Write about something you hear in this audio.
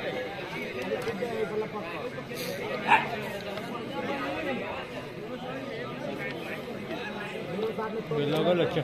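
A large outdoor crowd chatters and calls out throughout.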